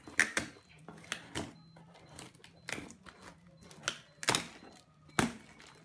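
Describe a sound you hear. Cardboard crinkles and rustles as a box is handled.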